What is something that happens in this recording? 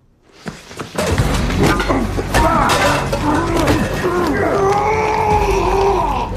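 A man shouts and groans in strain.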